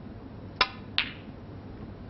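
Snooker balls collide with a sharp clack.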